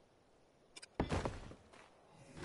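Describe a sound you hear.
A heavy stone block thuds into place.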